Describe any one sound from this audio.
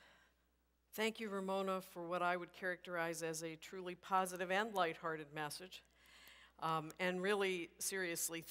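A woman speaks calmly over a loudspeaker in a large echoing hall.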